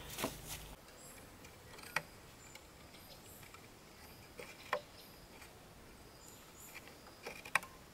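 Bamboo strips rustle and tap as they are fitted together.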